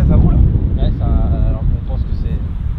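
A man calls out from a short distance.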